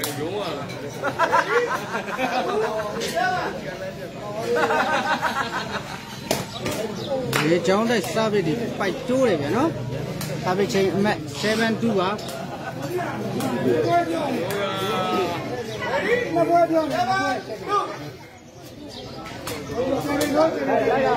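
Men in a nearby crowd talk and call out.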